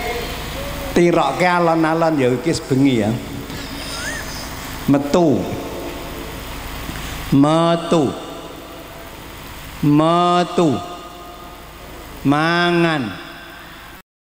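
An elderly man chants in long, drawn-out phrases through a microphone and loudspeakers.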